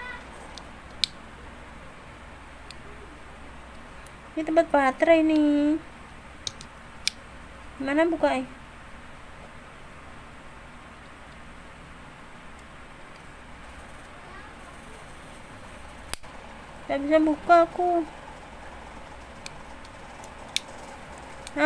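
Small plastic parts click and tap softly between fingers.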